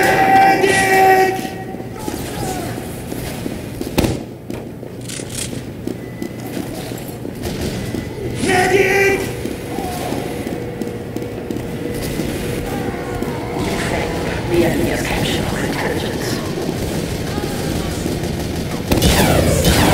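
Footsteps patter quickly and steadily on a hard floor.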